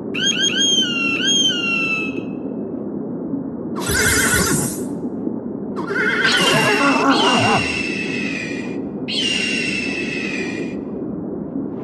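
An eagle screeches repeatedly.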